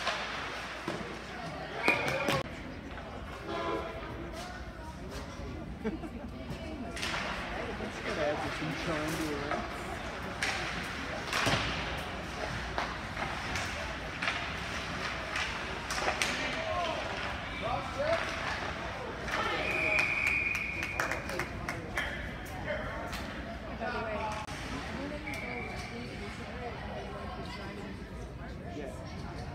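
Skates scrape and swish across ice in a large echoing rink.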